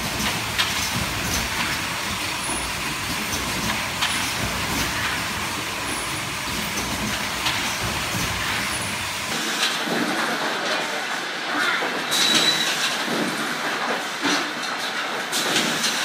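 Machines whir and click steadily.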